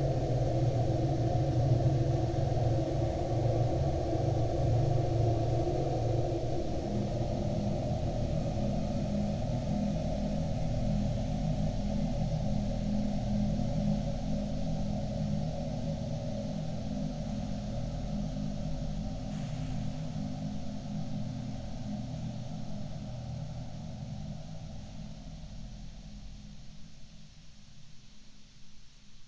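A dance band plays slow, muffled old music that slowly fades.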